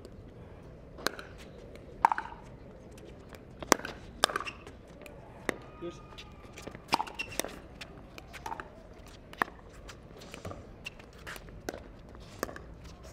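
Paddles hit a ball back and forth with sharp pops.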